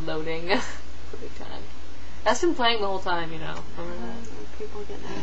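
A young woman speaks with animation close to a webcam microphone.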